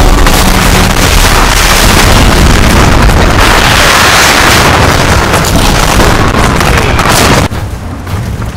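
A battle rages with clashing weapons and explosions.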